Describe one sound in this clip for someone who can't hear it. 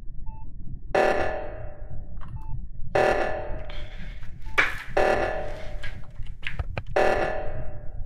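An alarm blares loudly in repeated bursts.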